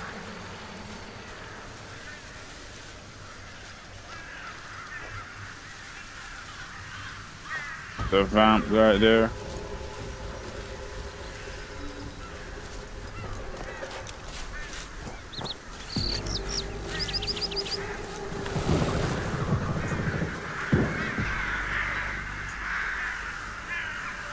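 Footsteps swish through dry grass.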